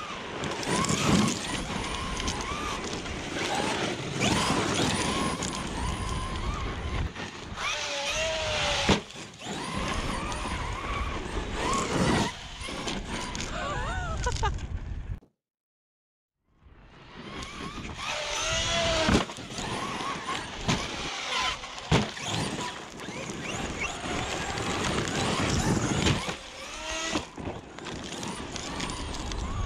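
Tyres spray and crunch over loose gravel.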